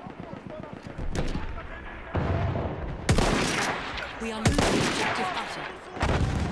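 Shells explode in the distance with deep rumbling booms.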